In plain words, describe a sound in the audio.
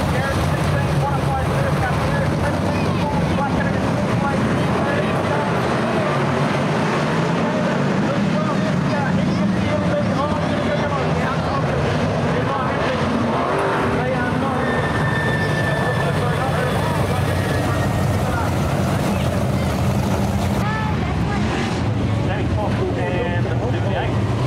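Loud race car engines roar and rev steadily close by.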